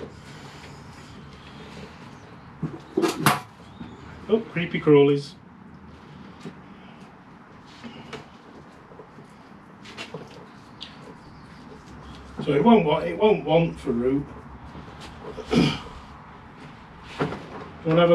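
Soil rustles and scrapes as a man works it around a small tree's roots.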